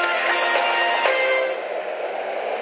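A short triumphant musical jingle plays.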